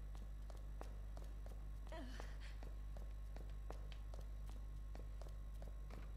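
Footsteps climb wooden stairs.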